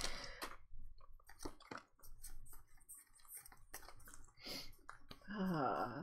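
Playing cards slide against each other.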